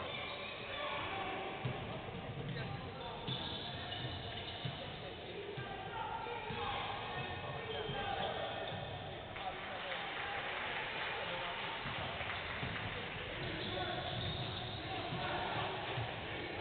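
Basketball shoes squeak on a hardwood floor in a large echoing hall.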